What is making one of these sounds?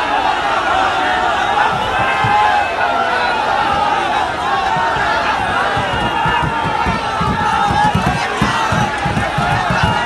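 A large crowd shouts and cheers loudly all around.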